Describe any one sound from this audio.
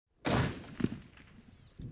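A rifle fires a sharp shot close by.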